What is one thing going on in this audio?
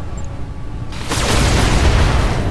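Laser weapons fire in a rapid burst.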